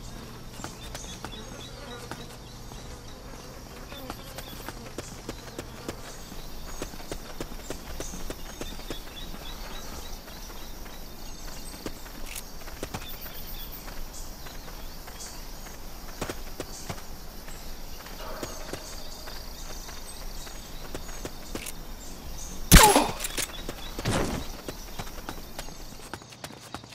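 Footsteps pad softly on hard ground.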